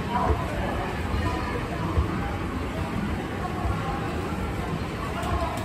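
An escalator hums and rumbles steadily as it moves.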